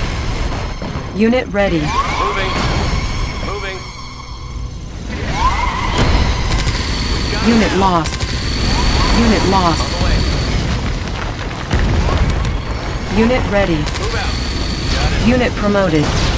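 Weapons zap and explosions boom in a battle.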